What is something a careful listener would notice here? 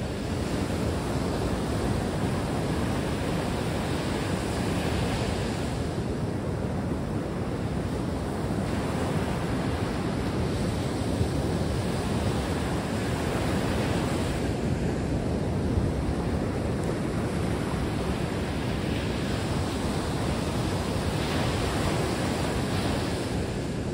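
Waves break and wash up on a beach, rising and falling.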